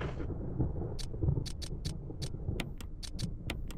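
Menu selections click sharply several times.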